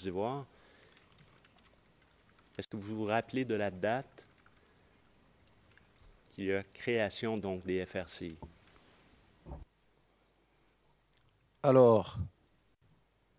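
A middle-aged man speaks with animation into a microphone, pausing between phrases.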